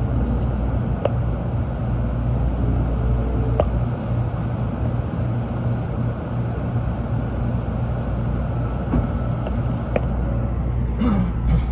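Metal clicks and squeaks sound now and then from the train.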